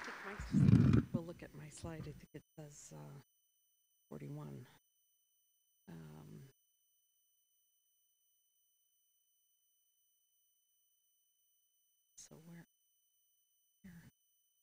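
An elderly woman speaks calmly into a microphone, heard through a loudspeaker in a large room, with long pauses.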